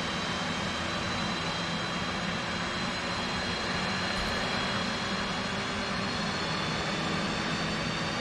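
A jet engine hums steadily with a high, even whine.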